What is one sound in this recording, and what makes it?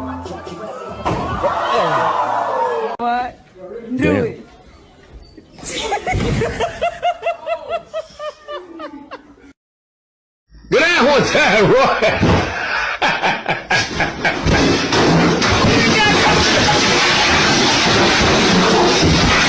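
Young men talk and laugh loudly over an online call.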